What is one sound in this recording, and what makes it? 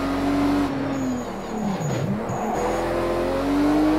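A car engine's revs dip and swell as it brakes and downshifts into a corner.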